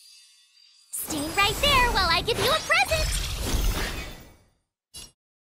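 Sparkling magical chimes ring out.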